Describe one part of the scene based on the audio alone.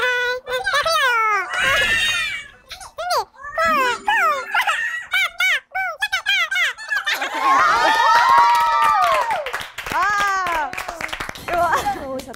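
Young women shriek and laugh excitedly, their voices sped up and high.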